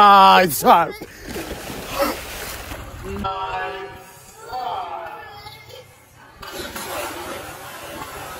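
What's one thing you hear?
Water splashes heavily as someone falls into a pool.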